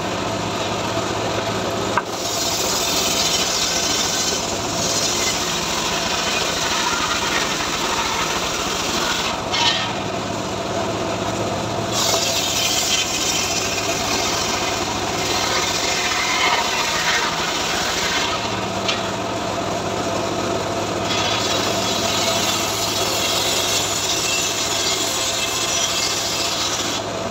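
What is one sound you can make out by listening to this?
An engine drones steadily and loudly.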